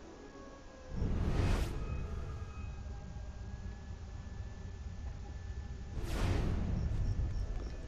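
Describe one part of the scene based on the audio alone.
A game effect whooshes.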